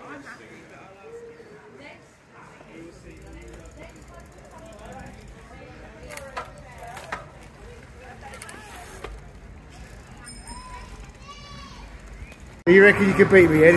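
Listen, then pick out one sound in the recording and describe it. A small bicycle rolls over paving stones.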